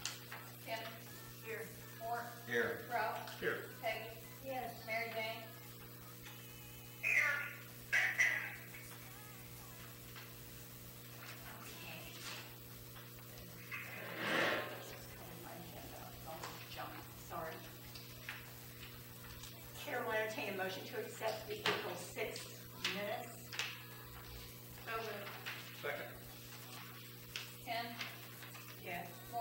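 Adults talk calmly, heard from a distance in a small room.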